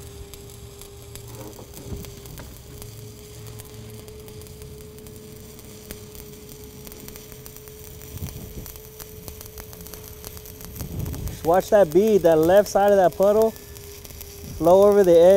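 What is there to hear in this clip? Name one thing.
An electric welding arc crackles and sizzles steadily.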